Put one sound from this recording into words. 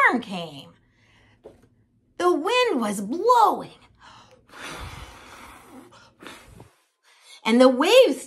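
A woman speaks expressively and animatedly close to the microphone.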